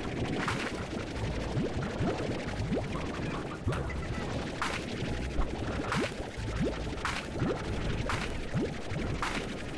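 A video game blaster fires in short, sharp bursts again and again.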